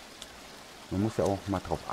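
Water rushes over rocks nearby.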